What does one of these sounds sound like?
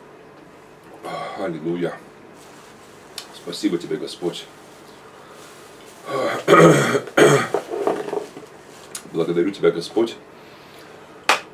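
A middle-aged man speaks calmly, close to the microphone.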